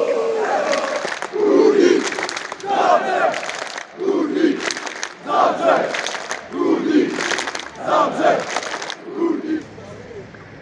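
A large crowd shouts in rhythmic bursts.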